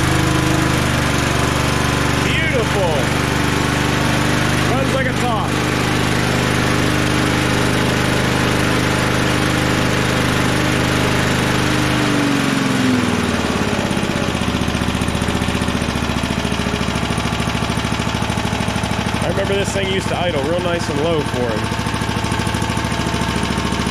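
A lawn mower engine runs loudly and steadily, then its pitch drops to a lower idle.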